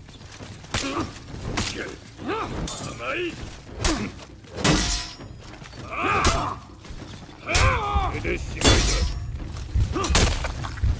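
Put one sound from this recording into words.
Swords clash and swish sharply again and again.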